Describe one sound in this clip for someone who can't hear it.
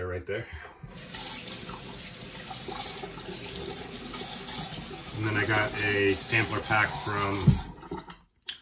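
A shaving brush swishes and lathers.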